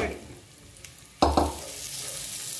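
Ingredients drop into a hot pan with a splash.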